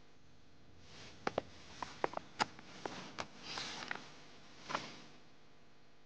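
Paper rustles and crackles as photographs are handled.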